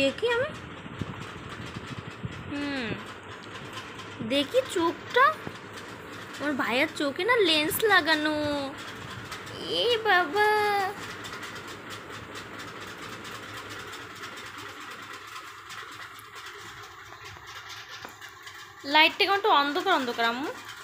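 A woman speaks to a baby close by in a high, playful, sing-song voice.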